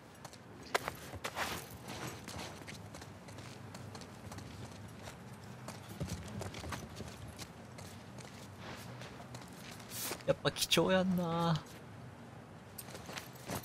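Footsteps crunch softly over debris on a hard floor.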